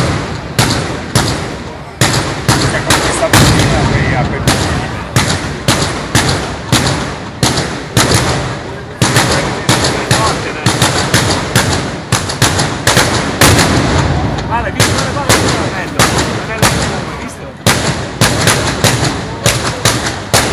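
Loud firecrackers explode in rapid bursts outdoors, echoing.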